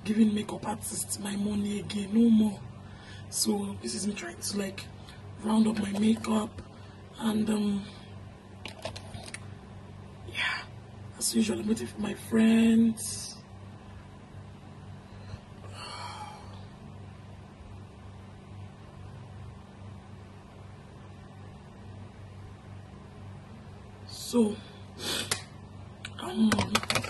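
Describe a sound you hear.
A young woman talks casually and close to the microphone, in short bursts.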